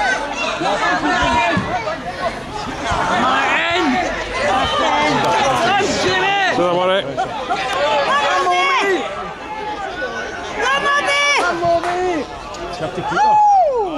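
Men in a crowd nearby shout and cheer excitedly outdoors.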